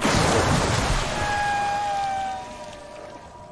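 Water bursts up in a loud, rushing splash.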